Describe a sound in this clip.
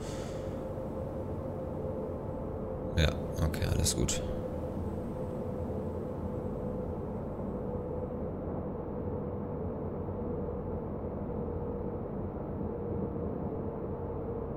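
A train's electric motor hums steadily as the train rolls along the track.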